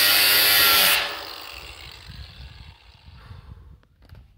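An angle grinder spins down and winds to a stop.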